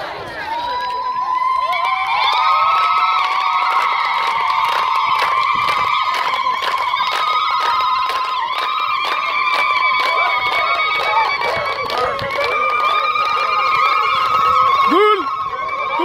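A crowd of women ululates loudly and steadily.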